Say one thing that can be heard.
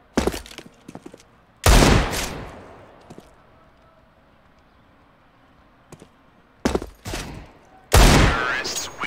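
Loud gunshots crack one after another.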